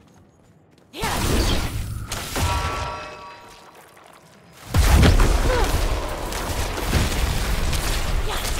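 Icy magic blasts crash and roar in bursts.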